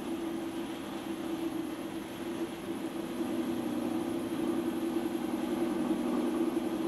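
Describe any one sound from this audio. A potter's wheel hums steadily as it spins.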